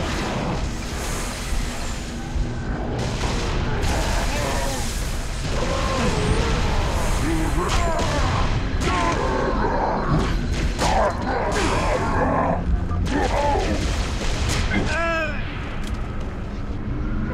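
Gunfire crackles in a video game.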